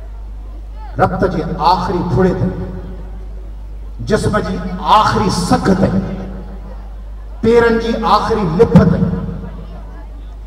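A man sings loudly through a microphone and loudspeakers, in short phrases.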